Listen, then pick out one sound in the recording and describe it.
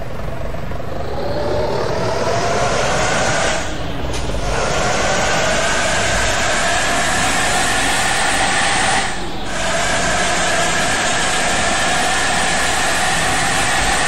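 A bus engine hums and rises in pitch as the bus speeds up.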